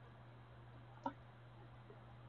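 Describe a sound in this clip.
A glass bottle knocks against a hard surface.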